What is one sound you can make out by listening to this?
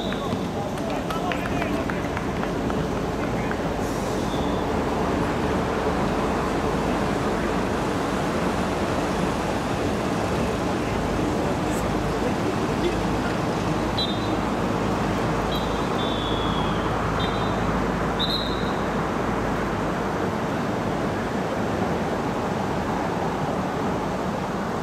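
Spectators chatter nearby, outdoors.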